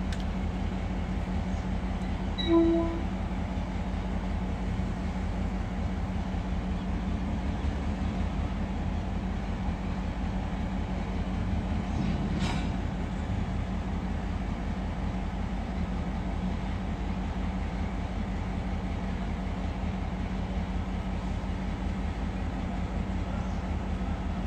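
Steel wheels clack and creak over the track joints.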